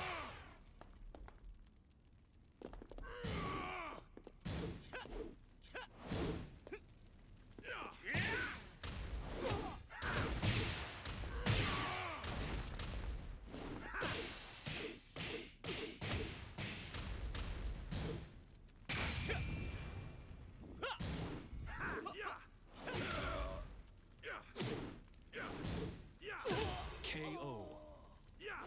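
Fighters grunt and shout as they strike.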